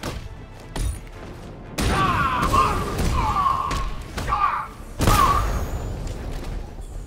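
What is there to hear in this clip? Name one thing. Blows, thuds and crashes of a brawl ring out.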